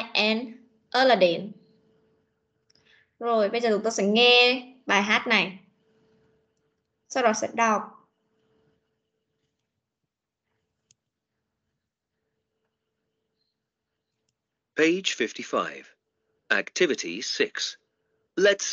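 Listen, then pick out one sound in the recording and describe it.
A woman speaks clearly over an online call, in short bursts with pauses.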